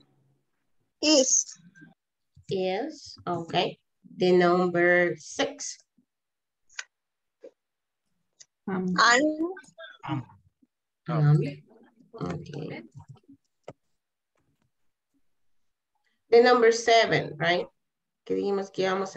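A woman speaks calmly over an online call, reading out sentences.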